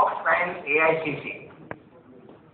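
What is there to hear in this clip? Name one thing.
A man speaks into a microphone, heard over loudspeakers in a hall.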